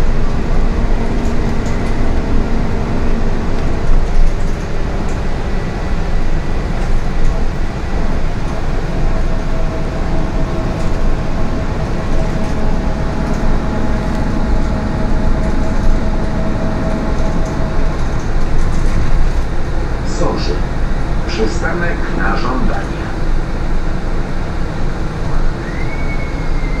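A bus engine hums and rumbles steadily from inside the cabin.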